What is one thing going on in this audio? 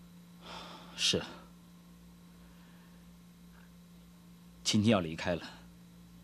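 A man answers in a low, calm voice.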